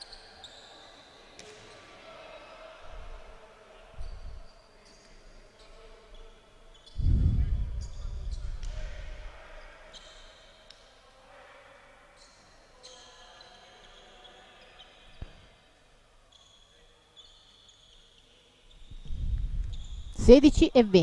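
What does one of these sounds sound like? Sneakers squeak sharply on a hard court, again and again.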